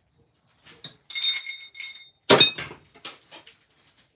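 A cymbal crashes and rings.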